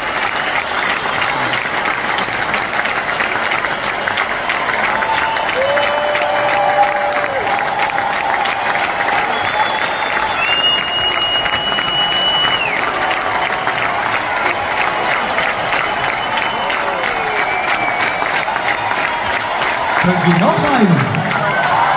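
A man sings through loudspeakers over a band.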